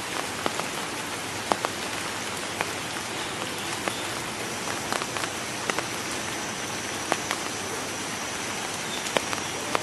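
A cassowary wades through shallow muddy water.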